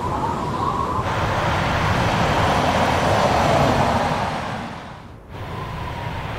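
A car engine hums as a car drives along a road.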